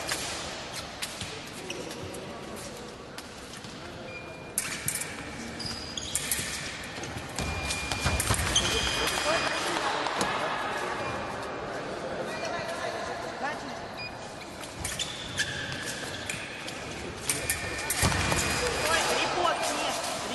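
Fencing blades clash and click sharply.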